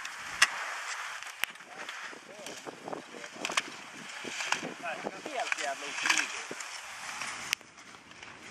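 Skis scrape and hiss over hard snow.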